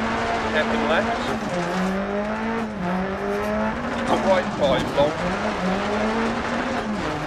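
A rally car engine revs hard, rising and dropping in pitch as gears change.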